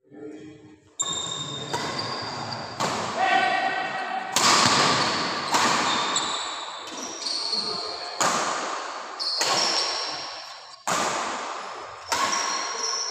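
Badminton rackets strike a shuttlecock back and forth in an echoing hall.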